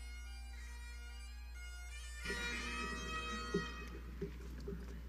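Instrumental music plays in a large hall.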